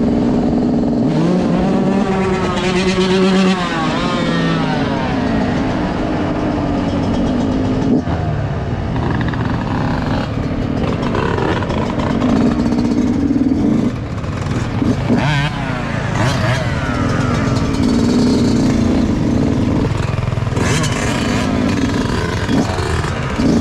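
Another dirt bike engine revs nearby.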